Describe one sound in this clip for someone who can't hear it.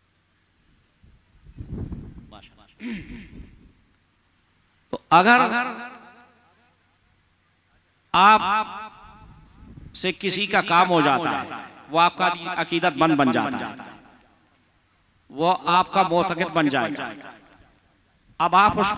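A middle-aged man speaks into a microphone with feeling, in phrases broken by pauses.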